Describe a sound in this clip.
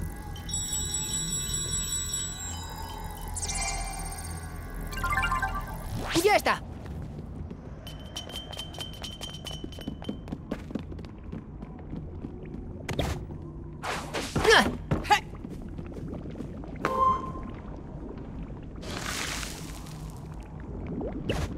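Game music plays throughout.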